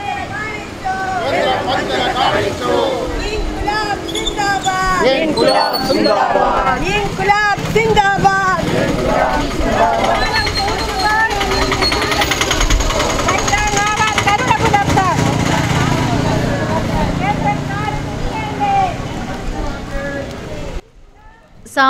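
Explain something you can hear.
A crowd of women and men chant slogans together outdoors.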